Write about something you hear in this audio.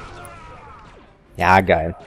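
A blaster shot strikes with a sharp crackle.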